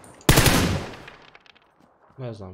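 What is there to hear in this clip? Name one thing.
A rifle fires a rapid burst of shots that echo away.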